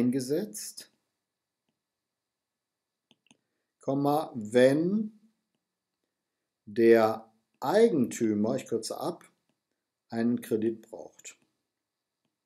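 A man speaks calmly and slowly into a close microphone, with pauses.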